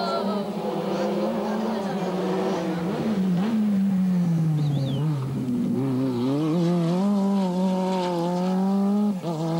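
A rally car engine roars loudly, rising and falling in pitch as the driver shifts gears.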